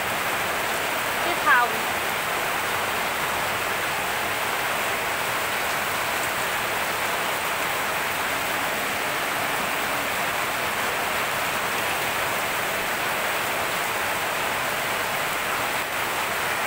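Fruit simmers and sizzles steadily in a hot pan.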